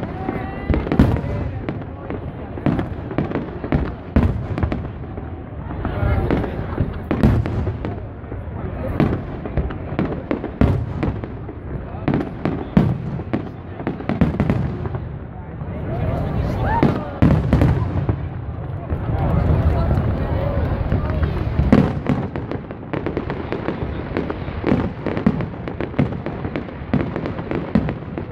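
Fireworks boom and crackle loudly overhead, one burst after another.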